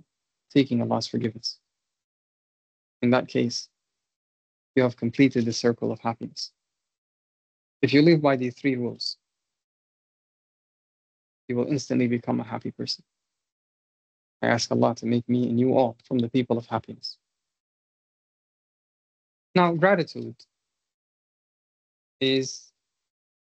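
An adult man speaks calmly in short phrases with pauses, heard through an online call.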